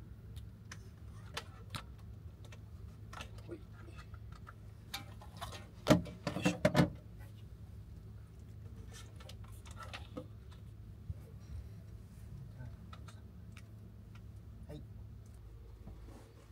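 Small objects knock and rattle as cables are handled up close.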